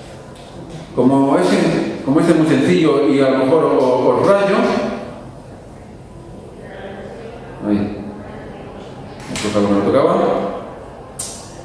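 A man lectures through a microphone in a large echoing room.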